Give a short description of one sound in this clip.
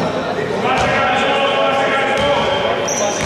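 A man shouts across the court.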